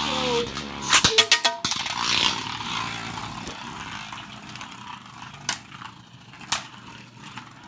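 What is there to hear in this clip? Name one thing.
Spinning tops clack sharply against each other.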